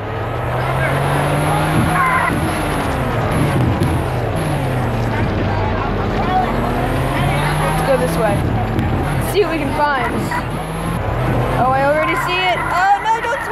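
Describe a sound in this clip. A racing car engine roars and shifts pitch as the car speeds up and slows down.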